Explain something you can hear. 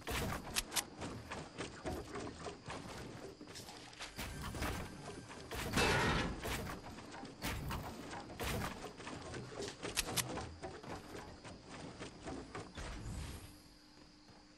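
Wooden panels snap into place with quick, repeated knocks.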